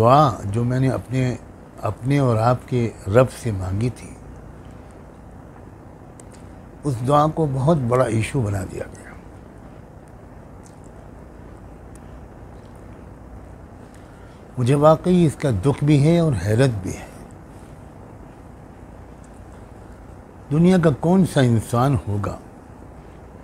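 An elderly man speaks calmly into a nearby microphone, in short phrases with long pauses.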